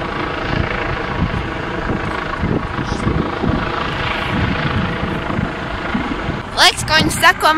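A helicopter's rotor throbs overhead.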